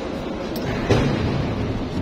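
Water sprays hard against a wall.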